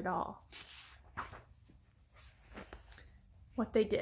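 Paper pages rustle and flip close by.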